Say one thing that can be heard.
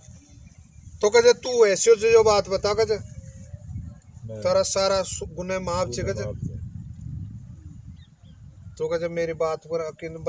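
An elderly man talks with animation close by, outdoors.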